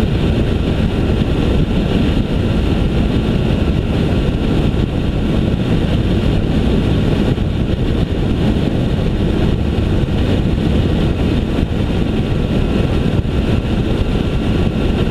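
Wind buffets loudly and steadily against a moving vehicle.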